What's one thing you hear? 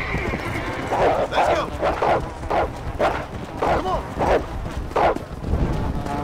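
Wolves snarl and yelp close by.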